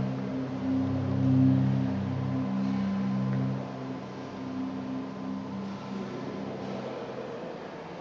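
Low electronic tones hum and pulse from loudspeakers.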